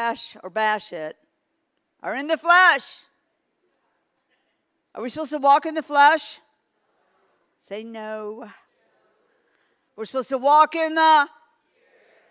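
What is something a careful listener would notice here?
An elderly woman speaks expressively into a microphone, heard through loudspeakers, in short phrases with pauses.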